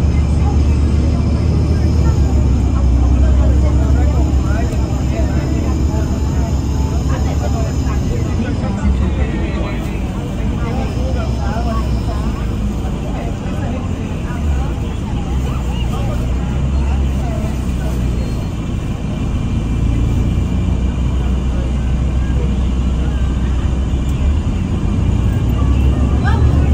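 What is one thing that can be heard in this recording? A bus engine rumbles steadily while riding along a street.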